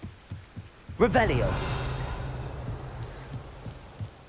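A magic spell bursts with a sudden loud whoosh.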